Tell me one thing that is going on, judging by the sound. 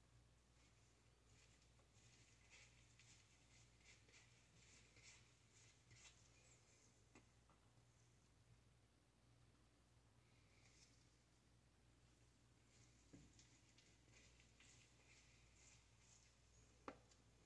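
A brush scrapes and dabs dye on hair with soft, repeated swishing.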